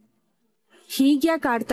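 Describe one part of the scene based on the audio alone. A middle-aged woman speaks loudly with emotion.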